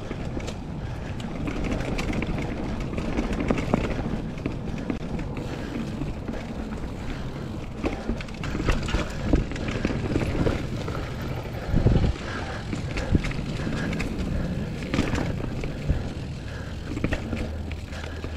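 A bike's frame and chain rattle over bumps.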